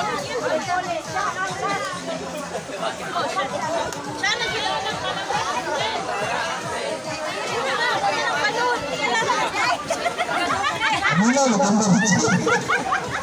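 A crowd of young men and women chatters and shouts outdoors.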